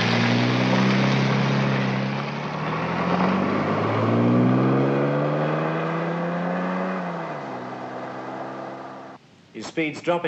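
A car engine hums and rises in pitch as the car pulls away.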